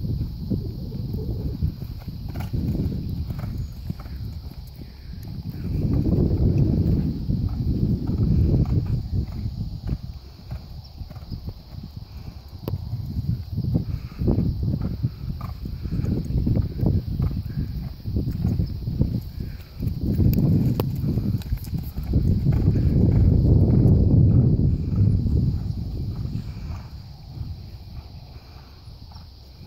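A horse canters on soft sand with dull, rhythmic hoofbeats.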